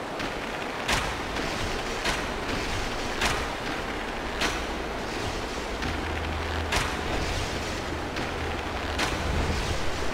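Blades clash and strike sharply in a fight.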